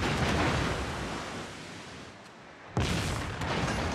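Shells splash heavily into the water nearby.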